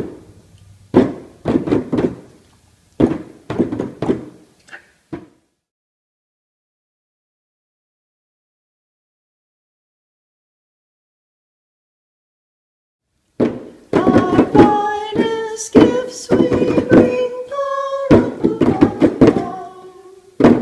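Hands beat on frame drums in a group.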